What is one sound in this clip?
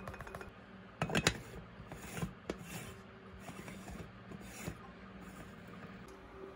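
A metal coffee pot clinks as its parts are screwed together.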